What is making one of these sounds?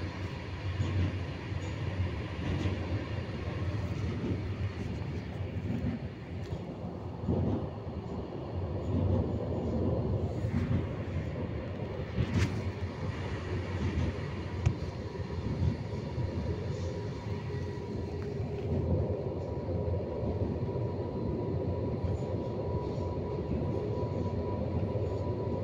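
A tram rumbles and rattles along its rails.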